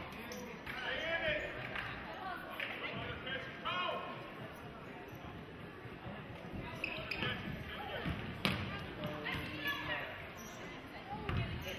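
Basketball shoes squeak sharply on a gym floor.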